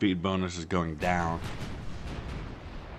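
A shell explodes with a heavy boom.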